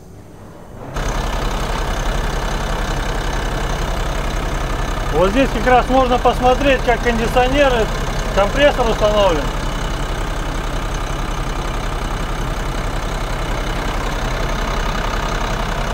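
A truck engine idles nearby with a steady low rumble.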